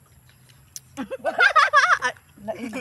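Women laugh loudly together.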